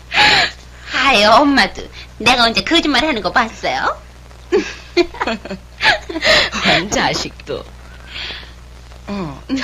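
A young woman talks cheerfully, close by.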